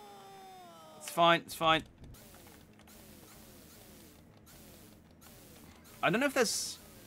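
Electronic retro game tones chirp and fall in pitch.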